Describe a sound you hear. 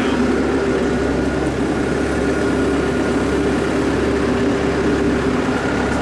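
A digger bucket scrapes through soil.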